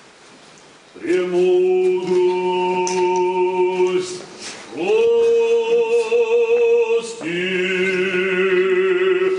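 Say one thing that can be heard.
A choir sings loudly in long, sustained chords that echo around the hall.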